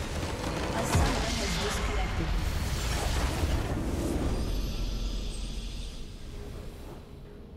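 A deep explosion booms and rumbles, then fades away.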